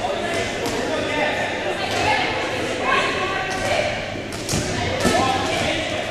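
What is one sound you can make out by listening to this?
A crowd of young women chatters and calls out in a large echoing gym.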